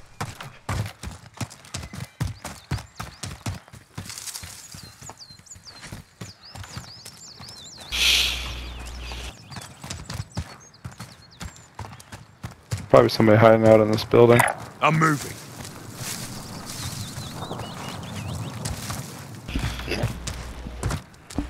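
Footsteps run over dirt and grass.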